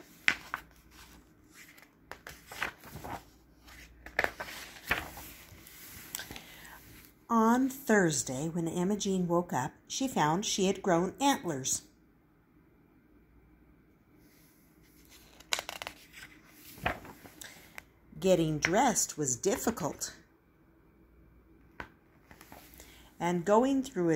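Paper pages rustle and flip as a book's pages are turned.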